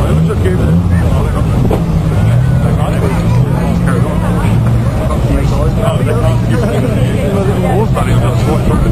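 Car engines rumble and idle loudly outdoors.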